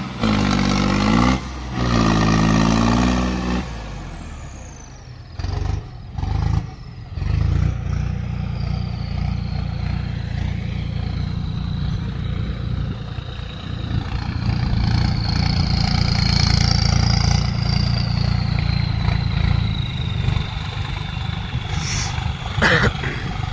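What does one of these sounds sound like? A tractor engine rumbles and revs loudly outdoors.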